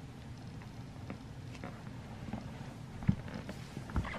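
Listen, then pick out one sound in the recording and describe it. A plastic bottle is set down on the floor with a soft knock.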